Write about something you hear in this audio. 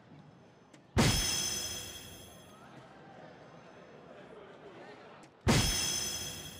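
A dart thuds into an electronic dartboard.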